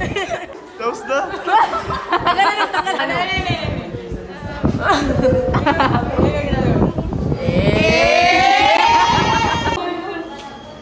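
A young woman laughs and shrieks with excitement.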